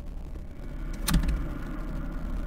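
A door rattles sharply as someone tries to open it.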